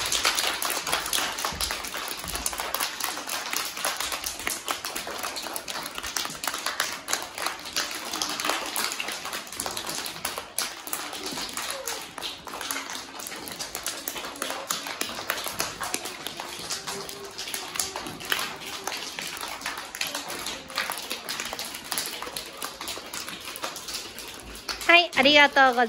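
Many young children clap their hands in quick, uneven bursts.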